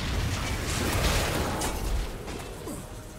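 Video game spell effects crackle and clash loudly, then fade.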